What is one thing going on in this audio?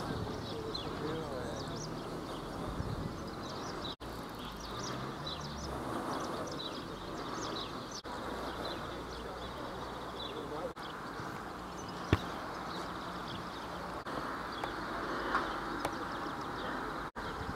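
Men talk casually at a distance outdoors.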